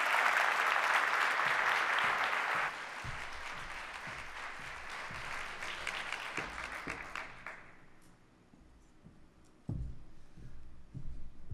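High heels tap across a stage floor.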